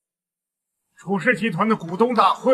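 A middle-aged man speaks formally.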